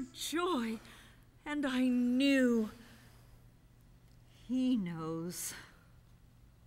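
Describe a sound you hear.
A woman sings with emotion in short phrases.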